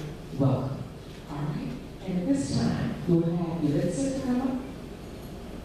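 A woman speaks over a loudspeaker in an echoing hall.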